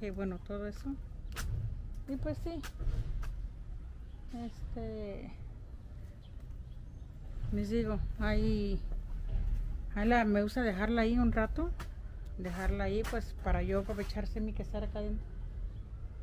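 A middle-aged woman talks calmly close by.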